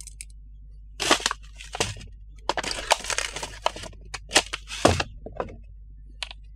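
A plastic bag crinkles in hands.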